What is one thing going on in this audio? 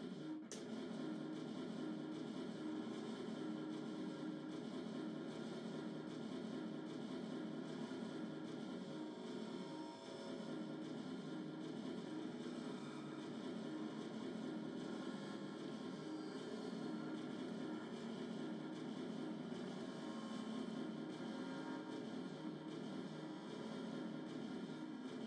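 Electronic music plays as a dense, steady droning hum with layered tones.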